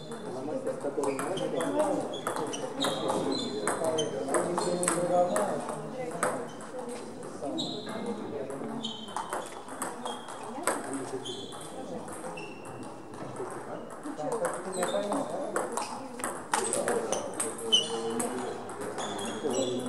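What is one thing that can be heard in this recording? A table tennis ball clicks back and forth off paddles and the table in an echoing hall.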